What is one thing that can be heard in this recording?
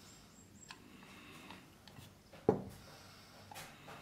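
A metal lock knocks against a wooden board.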